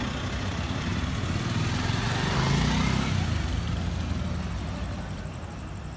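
A motorbike engine passes close by.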